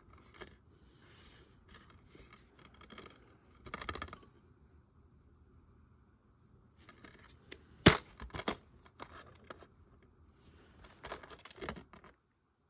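A plastic case rattles and taps as hands turn it over.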